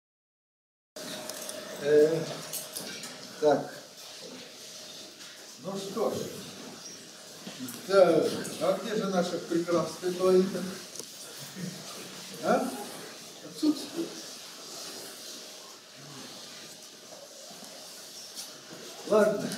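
An elderly man speaks calmly, pausing between phrases.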